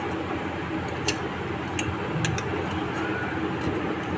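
A metal spoon scrapes and clinks against a bowl.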